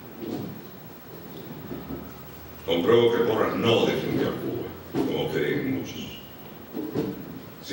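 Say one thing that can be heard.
An elderly man speaks calmly into a microphone, reading out.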